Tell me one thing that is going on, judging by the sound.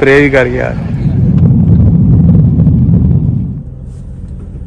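A car engine rumbles loudly.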